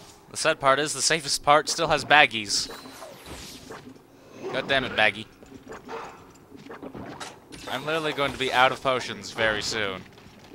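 A heavy metal weapon swings and clanks.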